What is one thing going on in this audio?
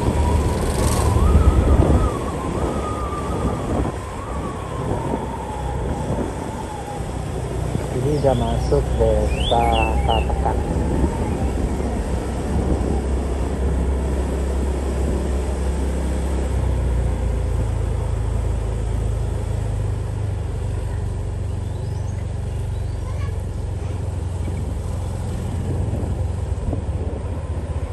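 Wind rumbles steadily across the microphone outdoors.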